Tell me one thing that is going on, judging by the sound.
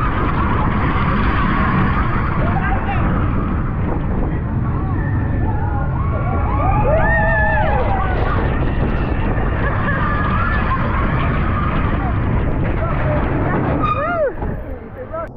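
Riders scream and cheer with excitement.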